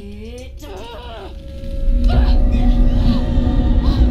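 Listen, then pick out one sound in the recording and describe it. A young woman cries out in strain.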